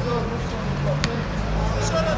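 A football thuds once as it is kicked outdoors.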